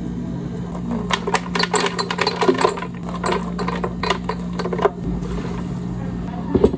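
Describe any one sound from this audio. Frozen berries clatter into a plastic blender jug.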